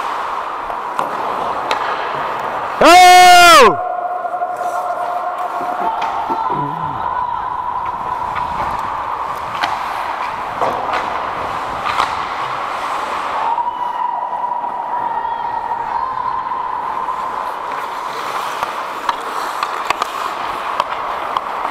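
Hockey sticks clack against pucks and ice.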